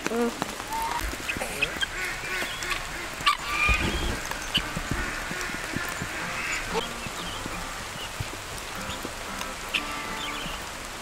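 Guinea fowl chirp and cluck softly nearby.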